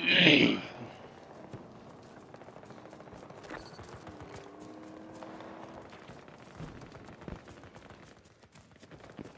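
Footsteps rustle through tall grass at a steady pace.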